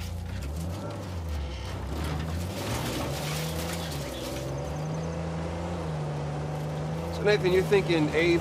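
A jeep engine rumbles steadily as it drives over rough ground.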